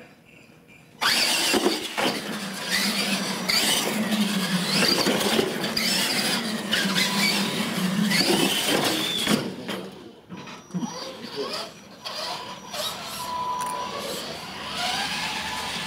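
Small electric motors whine as toy trucks drive and turn.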